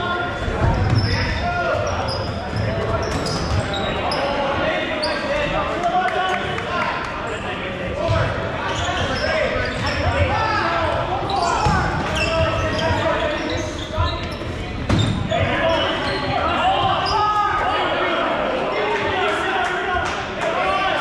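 Balls thud as they hit players and the floor.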